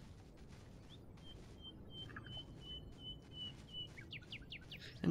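A magic spell shimmers with a thin high chime.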